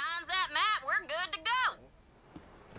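A small robot chatters in a high, electronic voice.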